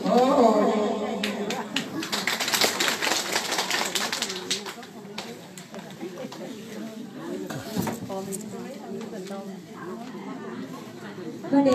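A crowd of people chatters and bustles nearby.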